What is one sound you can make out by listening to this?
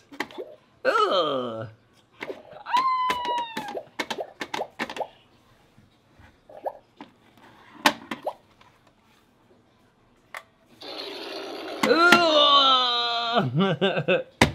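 A young girl cackles and shrieks playfully close by.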